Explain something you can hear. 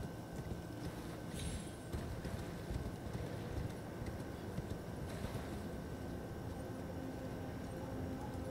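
Horse hooves thud quickly on rocky ground.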